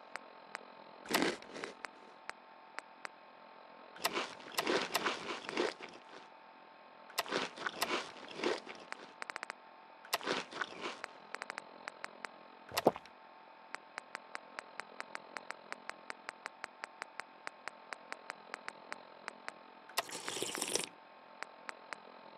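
A menu ticks with quick, repeated clicks as items scroll past.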